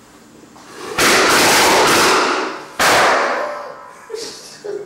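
A device bursts with a loud, roaring hiss of sparks and smoke.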